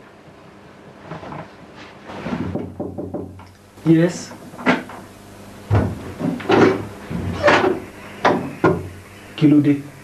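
A young man speaks with feeling, close by.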